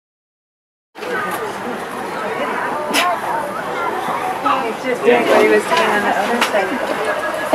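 A parrot tears and rips at a soft fabric toy.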